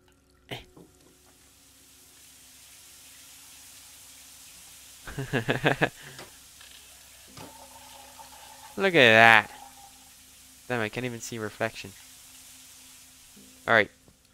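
Water sprays from a shower head, hissing steadily.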